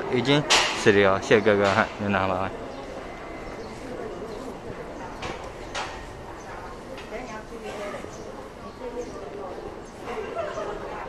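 People murmur and chatter in the background.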